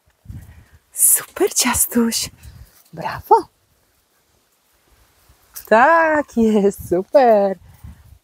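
A woman talks in a high, coaxing voice up close.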